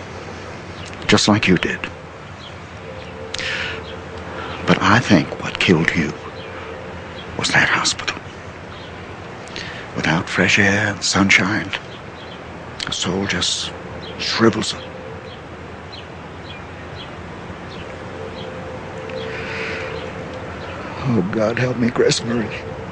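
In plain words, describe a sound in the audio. An elderly man speaks close by.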